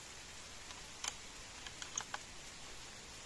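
An air rifle's barrel clicks as it is cocked and loaded.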